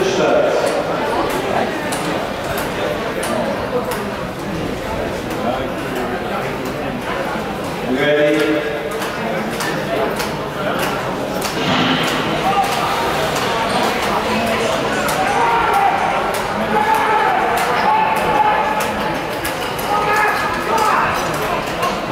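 A crowd of spectators chatters outdoors nearby.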